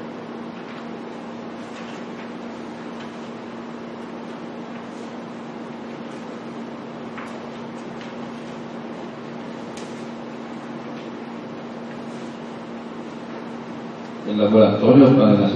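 Papers rustle and turn quietly.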